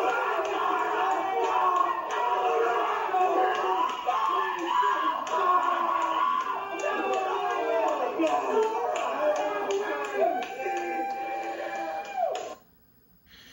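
Music from a video game plays through a television speaker.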